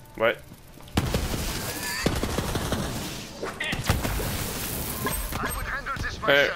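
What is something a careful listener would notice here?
A gun fires bursts of sharp, crackling shots.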